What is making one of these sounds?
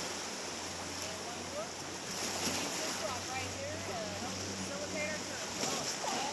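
Young people talk and call out on a raft close by.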